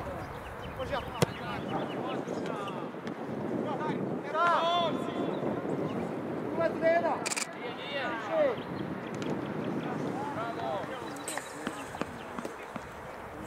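Young men shout and call out to each other outdoors.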